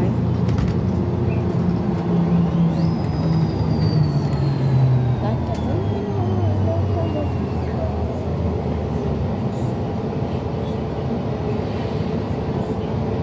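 A vehicle's engine rumbles steadily from inside as it drives along.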